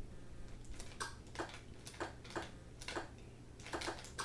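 A video game gives short blips as letters are picked.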